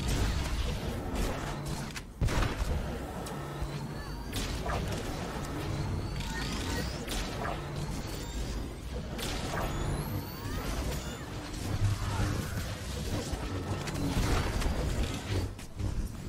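Science-fiction energy weapons zap and crackle in a battle.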